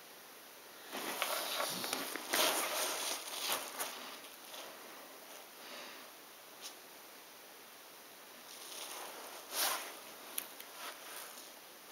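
Loose puzzle pieces rustle and clatter as a hand sifts through them.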